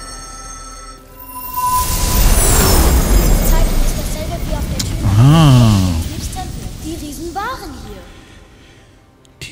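A loud magical whoosh bursts out and slowly fades.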